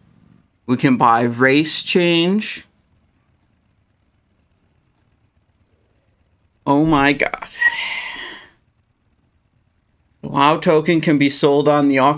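A young man talks with animation into a close microphone, pausing between phrases.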